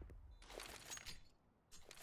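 Rapid rifle gunfire rings out.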